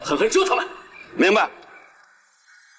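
An older man answers briefly over a radio handset, close by.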